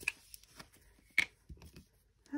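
A plastic cap clicks off a glue bottle.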